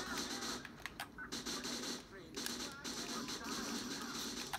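Gunshots pop from a television game through a speaker.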